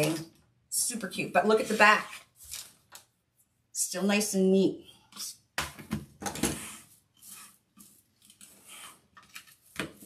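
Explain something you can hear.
A plastic board knocks on a table as hands flip it over.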